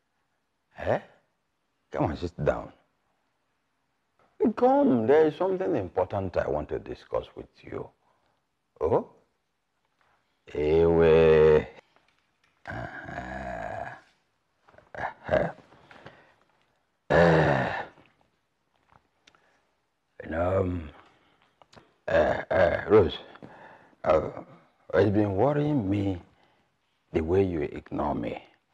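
An older man talks with animation, close by.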